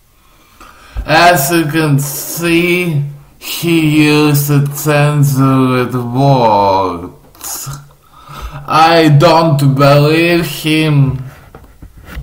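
A young man sings loudly and close by.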